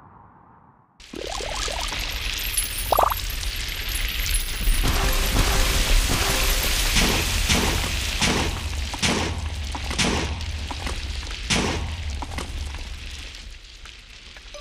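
A game's drill grinds steadily through rock with a rumble.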